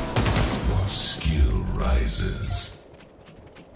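Loud gunfire and blasts boom and crackle.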